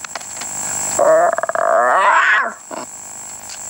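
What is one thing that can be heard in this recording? A young boy gives a playful, growling roar.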